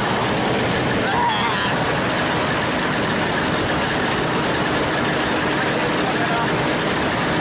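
Strong wind rushes and buffets against the microphone throughout.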